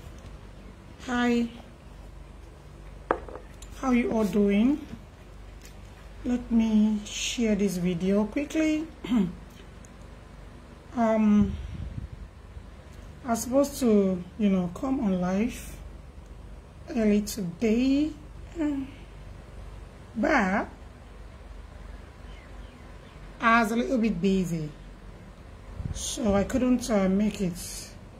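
A young woman speaks calmly and close up, in short phrases with pauses.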